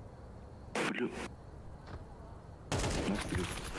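A rifle fires two quick shots.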